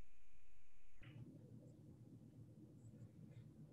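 Hands pat and slap a ball of dough.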